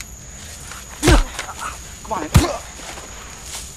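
A young man grunts loudly.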